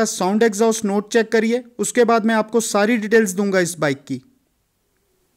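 A man speaks with animation nearby.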